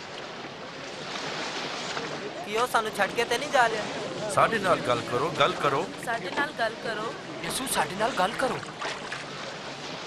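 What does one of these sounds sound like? A crowd of people murmurs and chatters.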